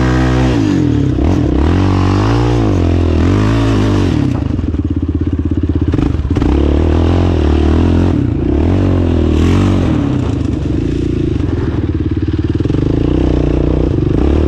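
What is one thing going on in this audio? A quad bike engine revs loudly up and down, very close.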